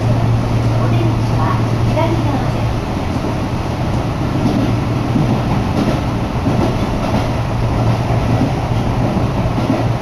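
A train rumbles along steadily.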